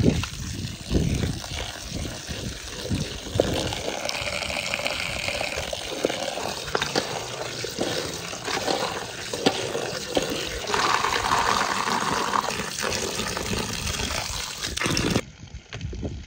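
Water pours and splashes into a metal bowl of berries.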